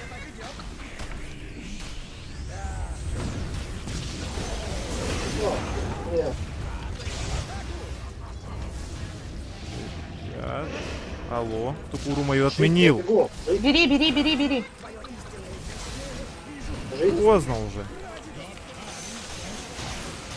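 Magic spells crackle and burst in a fantasy game battle.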